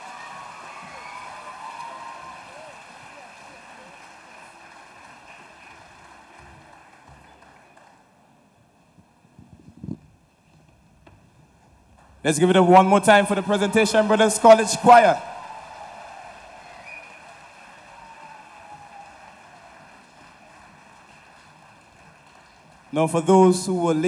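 A boys' choir sings in a large hall.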